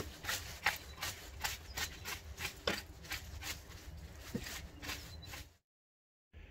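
A long-handled garden tool scrapes through soil and dead leaves in repeated strokes.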